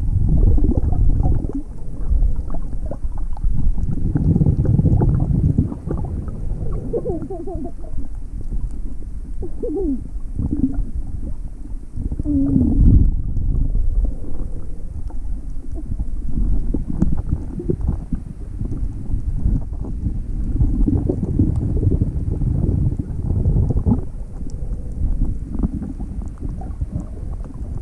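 Water sloshes and bubbles, heard muffled underwater.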